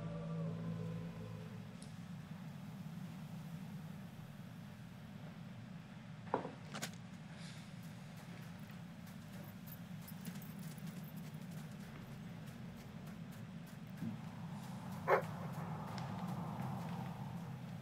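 Footsteps patter on sand.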